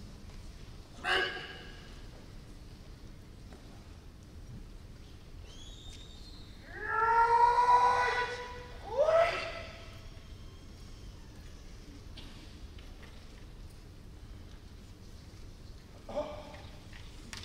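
Kendo fencers shout sharply in a large echoing hall.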